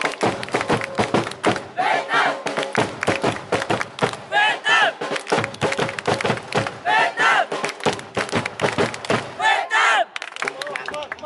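A crowd claps in rhythm close by.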